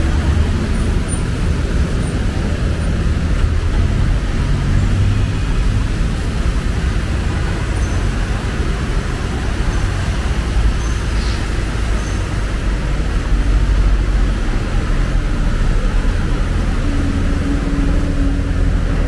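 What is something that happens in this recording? Water splashes and sloshes as vehicles drive through a flooded street.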